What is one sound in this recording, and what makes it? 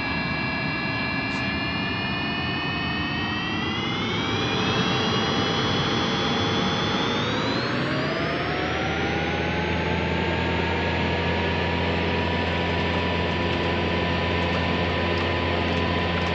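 A large aircraft rumbles as it rolls down a runway.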